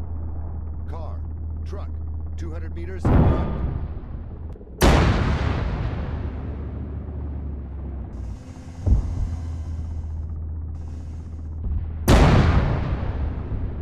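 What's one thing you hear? Helicopter rotors thump and drone overhead.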